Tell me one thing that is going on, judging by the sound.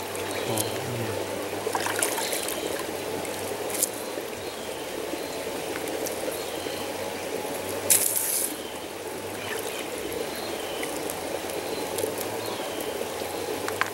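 Thin twigs rustle and snap in a person's hands.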